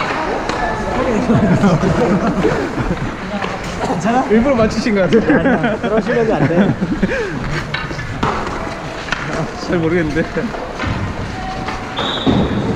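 Several young men talk and shout with animation in a large echoing rink.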